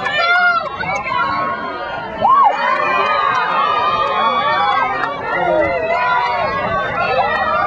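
A crowd of spectators shouts and cheers at an outdoor rugby match.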